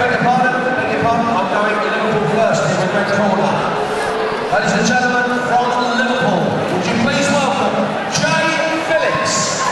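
A man sings into a microphone, heard through loudspeakers.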